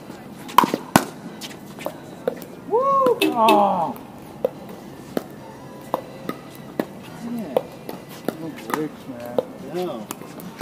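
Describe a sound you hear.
Paddles pop sharply against a plastic ball, back and forth.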